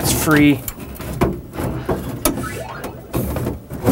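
A metal bracket clinks and scrapes against a wooden cabinet.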